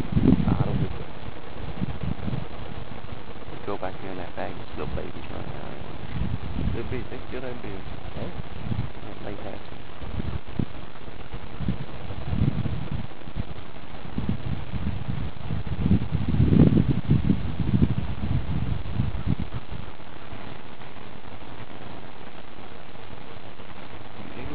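Wind blows steadily across open water outdoors.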